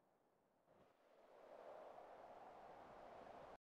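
Wind rushes steadily past at height.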